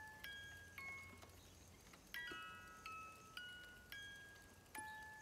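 A music box plays a slow, tinkling tune.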